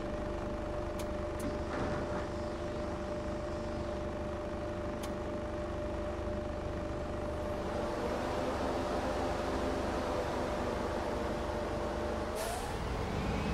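A bus engine idles with a steady hum.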